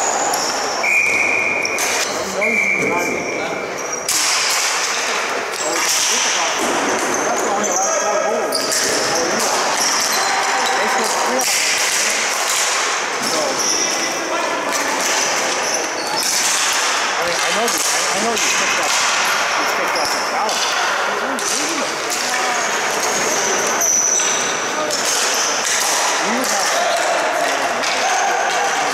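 Young players shout to each other in a large echoing arena.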